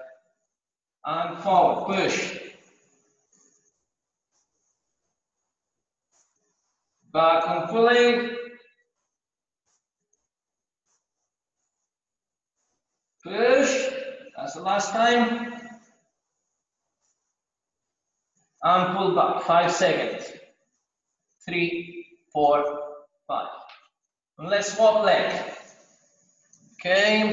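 A man speaks calmly in short bursts, with pauses between them.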